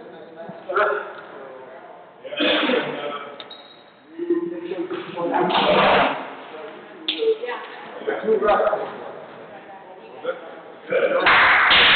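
Footsteps shuffle and squeak on a hard court floor.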